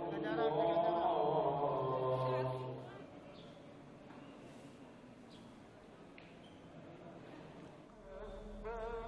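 A crowd murmurs softly in a large echoing hall.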